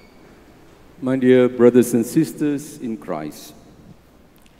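An elderly man speaks calmly into a microphone, heard through a loudspeaker.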